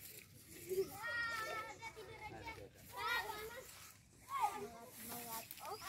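Children call out and shout with excitement nearby, outdoors.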